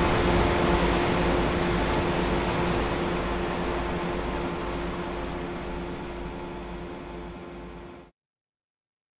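Dance music plays from a loudspeaker and slowly fades out.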